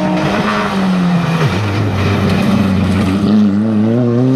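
Tyres hiss on the tarmac as a rally car passes close by.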